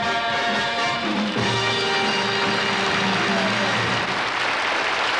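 An orchestra plays a brassy show tune that ends on a held chord.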